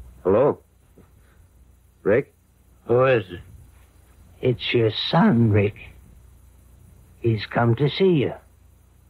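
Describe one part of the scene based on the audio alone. An old radio plays in short bursts through its small loudspeaker.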